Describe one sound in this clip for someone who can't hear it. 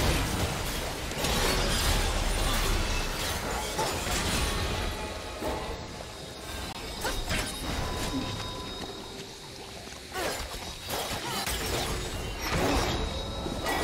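Swords clash and hit in quick strikes.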